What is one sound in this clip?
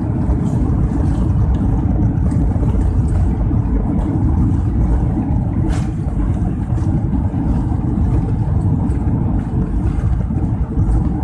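Strong wind roars and buffets against an aircraft cabin window.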